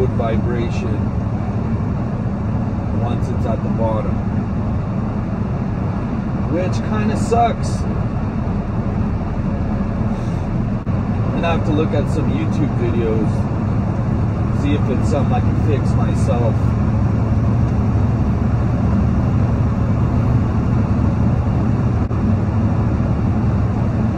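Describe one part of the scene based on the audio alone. A truck engine drones low and steady while driving.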